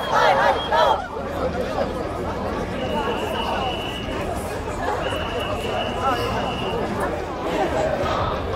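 A crowd murmurs and talks outdoors.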